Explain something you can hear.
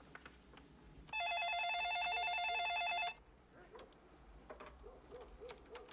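A woman types on a keyboard.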